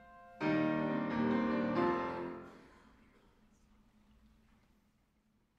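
A choir sings a final chord that rings out in a large echoing hall.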